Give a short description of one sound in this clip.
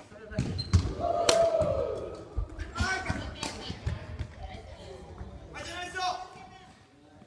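Players call out with lively voices in an echoing hall.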